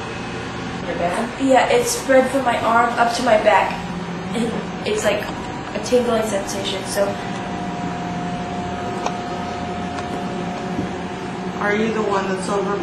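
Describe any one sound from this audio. A woman talks quietly close by.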